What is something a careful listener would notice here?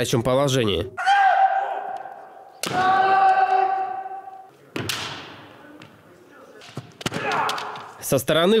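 Fencers let out long, loud shouts that ring through an echoing hall.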